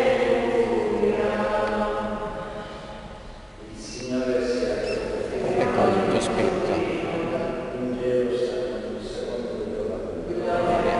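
An elderly man chants through a loudspeaker in a large echoing hall.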